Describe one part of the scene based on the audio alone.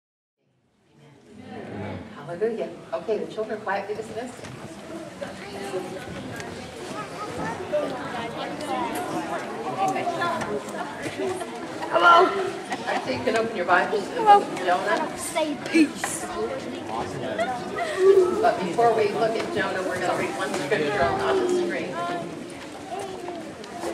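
A woman speaks calmly over a microphone in a large echoing hall.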